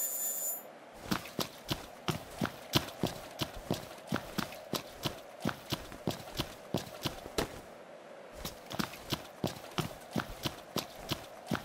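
Footsteps crunch quickly and steadily on gravel.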